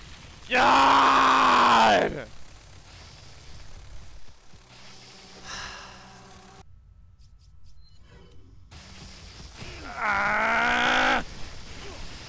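A man shouts loudly into a microphone.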